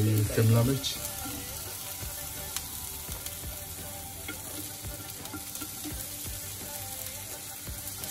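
Pepper strips drop and tap onto a pan.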